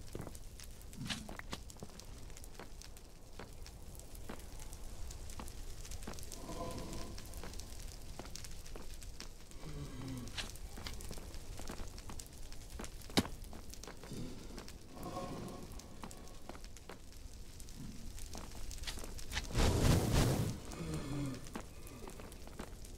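Footsteps tap on stone in a steady walking rhythm.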